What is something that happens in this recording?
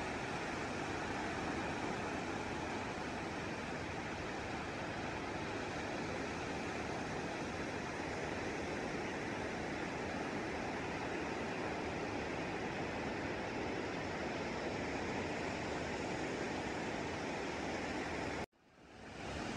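Waves break and wash steadily onto a beach outdoors in wind.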